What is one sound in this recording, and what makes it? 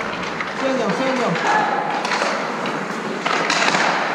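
Hockey sticks tap and clack on the ice.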